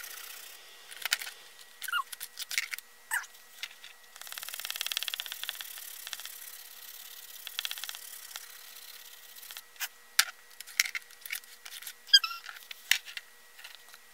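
Paper rustles as a hand presses a page flat.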